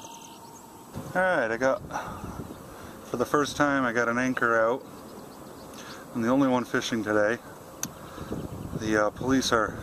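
A man talks with animation close by, outdoors in wind.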